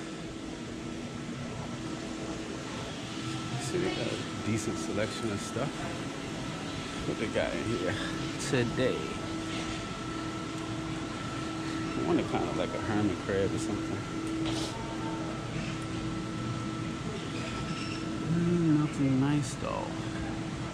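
Aquarium filters and pumps hum steadily.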